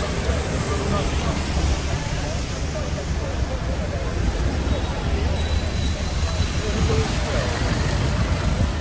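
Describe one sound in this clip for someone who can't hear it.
People talk in a crowd nearby.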